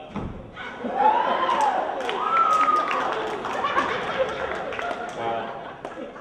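Wooden boards knock and clatter as a performer strikes them.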